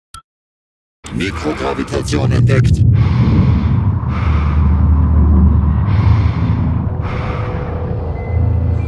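A deep mechanical rumble drones loudly.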